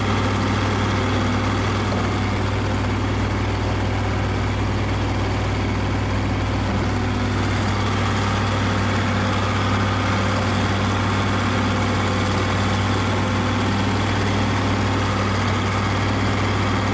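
Wood chips pour and rustle as they slide off a trailer.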